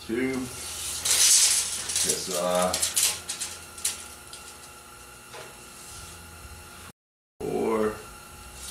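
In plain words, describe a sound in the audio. Metal rods clank and rattle against a metal table.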